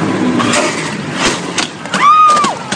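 A motorcycle crashes and scrapes onto the road with loud bangs.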